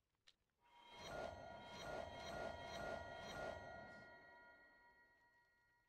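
A magical shimmering chime rings and fades.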